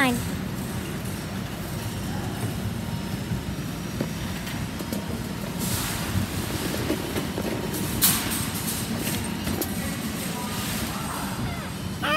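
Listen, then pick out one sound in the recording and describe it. A shopping cart's wheels rattle and rumble as it is pushed.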